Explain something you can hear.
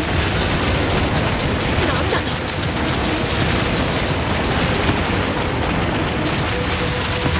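Explosions rumble and crackle loudly.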